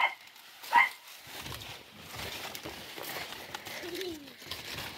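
Large leaves rustle and brush as someone walks through plants.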